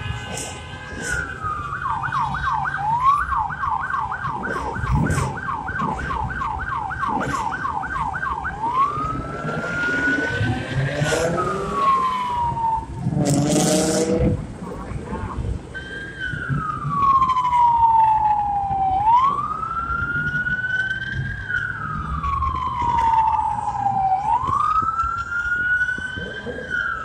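Police sirens wail and yelp close by.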